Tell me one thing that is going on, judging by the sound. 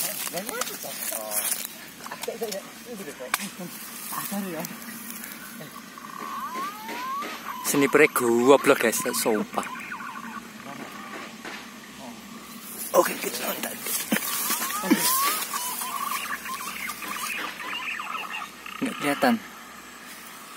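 Young men talk and call out to each other nearby, outdoors.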